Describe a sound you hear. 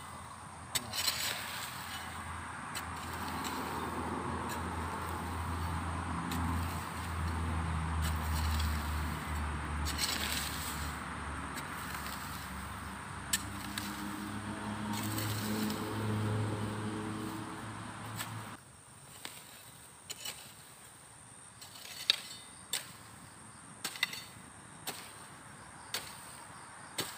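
A hoe chops and scrapes into dry soil with dull thuds.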